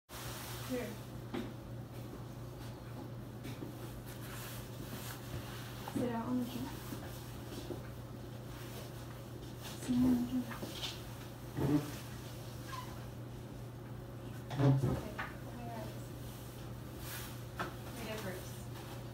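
A woman speaks quietly nearby, in short bursts.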